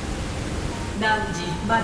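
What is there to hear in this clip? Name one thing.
A bright electronic chime sounds.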